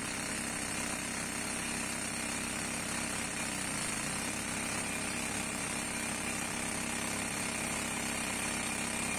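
A pneumatic drill rattles loudly and steadily against stone.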